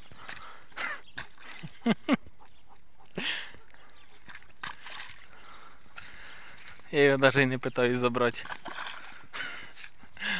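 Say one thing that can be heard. A small boy splashes through a muddy puddle.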